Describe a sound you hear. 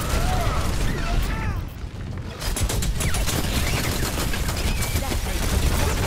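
Gunfire and game effects crackle and boom.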